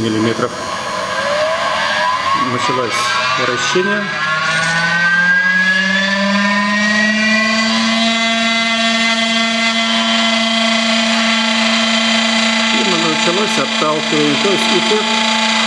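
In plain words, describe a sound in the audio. A spinning disc rubs against metal strips, making a humming tone that rises in pitch and then holds steady.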